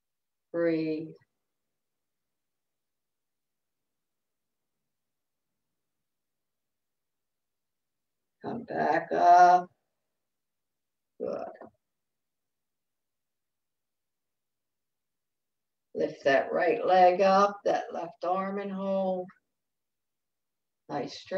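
An older woman speaks calmly through an online call, in short bursts with pauses.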